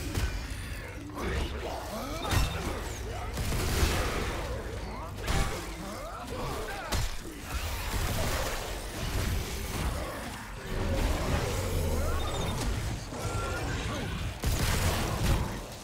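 A monster growls and snarls.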